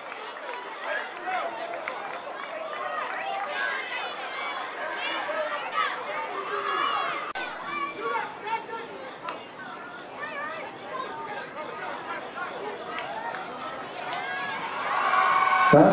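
A crowd of spectators chatters and shouts in the open air.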